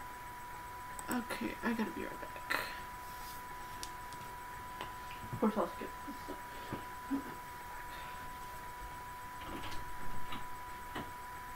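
A young woman speaks in short, surprised bursts close to a microphone.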